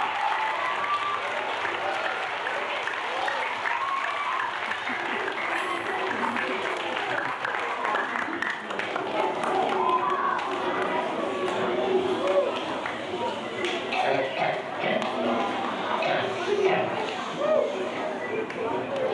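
A large crowd cheers and chatters, heard through a loudspeaker.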